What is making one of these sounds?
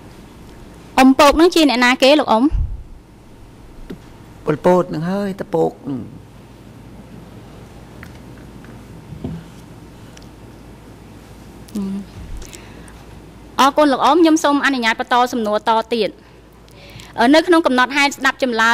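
A woman speaks clearly into a microphone.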